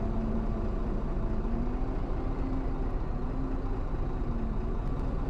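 A bus engine drones steadily as it drives.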